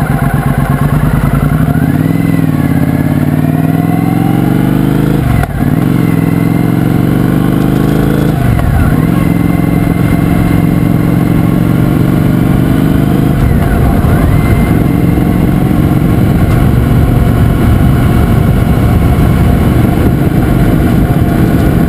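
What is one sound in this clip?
A motorcycle engine roars up close, climbing in pitch and dropping back with each gear change.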